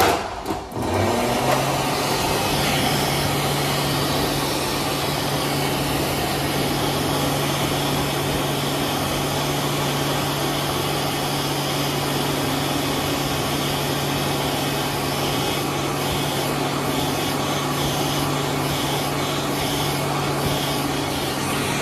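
A hand dryer starts and blows with a loud, steady whirring roar.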